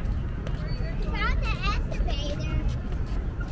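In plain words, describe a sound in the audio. A young girl calls out excitedly nearby.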